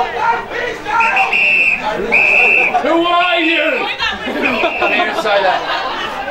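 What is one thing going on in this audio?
A referee's whistle blows in short bursts.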